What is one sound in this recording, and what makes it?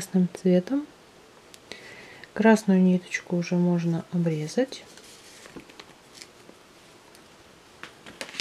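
A crochet hook softly scrapes and rustles through yarn.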